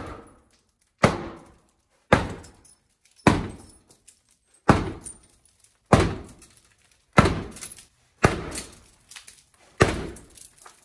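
A sledgehammer strikes a glass window again and again with loud, ringing bangs.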